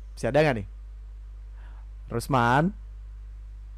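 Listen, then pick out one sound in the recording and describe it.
A young man speaks up close into a microphone with short, excited bursts of voice.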